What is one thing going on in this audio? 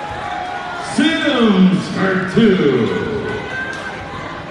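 A crowd cheers and shouts loudly, then dies down.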